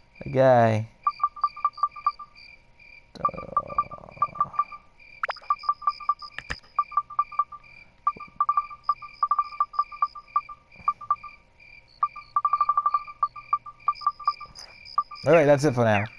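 Quick electronic beeps tick in rapid bursts as a menu cursor moves.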